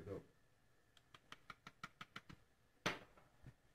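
A spice grinder clicks rapidly as it turns.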